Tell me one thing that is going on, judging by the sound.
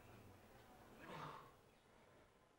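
A young man groans sleepily.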